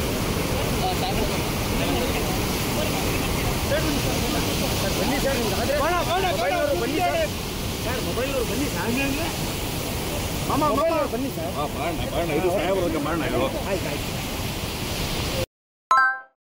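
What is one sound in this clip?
Water roars and churns as it rushes over a dam.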